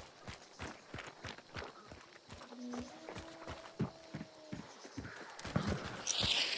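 Footsteps crunch steadily on gravel and dirt.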